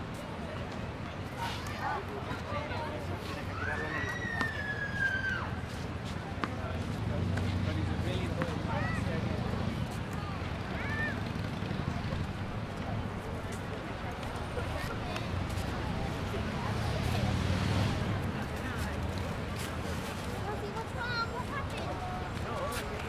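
A crowd of people chatters in the distance, outdoors.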